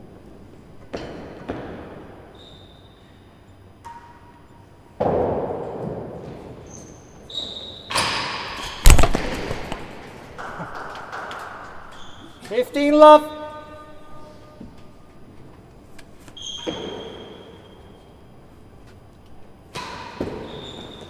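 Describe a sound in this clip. A racket strikes a ball with sharp smacks that echo around a large hall.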